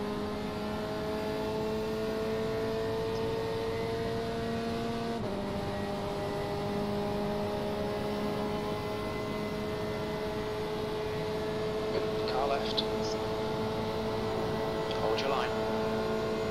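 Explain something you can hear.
A racing car engine drones at high revs, dropping in pitch as it shifts gear.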